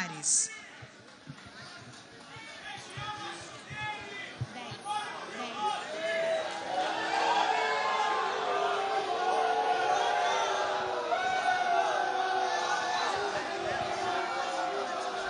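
A crowd of men and women chatters and cheers close by, growing louder.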